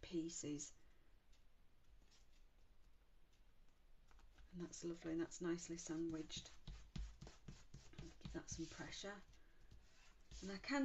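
Paper rustles and taps on a tabletop.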